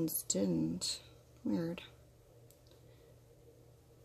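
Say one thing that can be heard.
A small brush clicks and scrapes against a glass bottle's neck.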